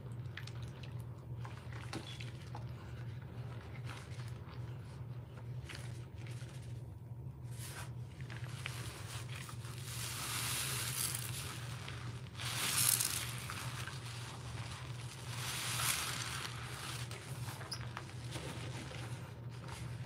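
Gloved hands squish and swish through soapy water.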